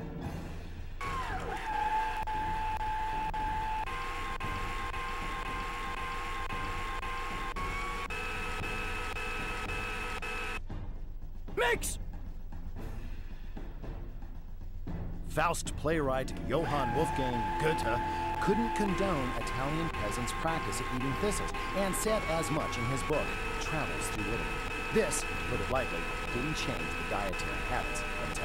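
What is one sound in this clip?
A stand mixer motor whirs, its pitch stepping higher as it speeds up.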